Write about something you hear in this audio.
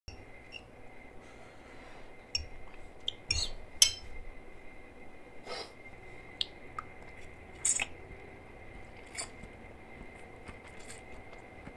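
A boy slurps and chews noodles close to a microphone.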